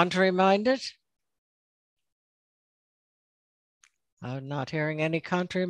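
An elderly woman speaks calmly through a headset microphone over an online call, pausing briefly.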